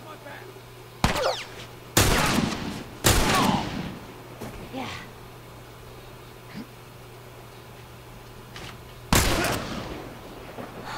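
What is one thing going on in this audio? Rifle shots ring out with loud, echoing bangs.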